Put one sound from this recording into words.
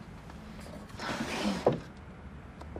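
A middle-aged woman speaks quietly nearby.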